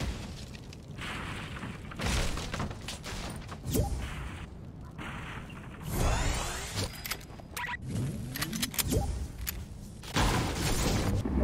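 Electricity crackles and buzzes close by.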